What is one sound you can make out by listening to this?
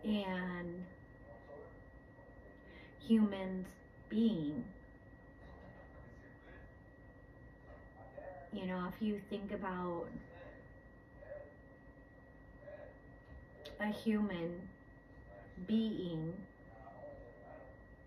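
A woman speaks calmly and slowly, close by, in pauses.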